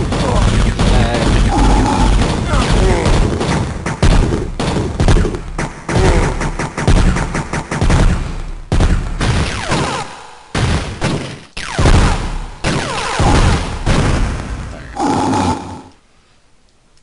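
Game guns fire in rapid bursts.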